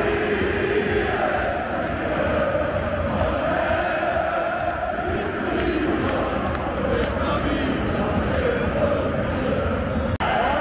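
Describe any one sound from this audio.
A huge stadium crowd sings and chants loudly in unison, echoing under the roof.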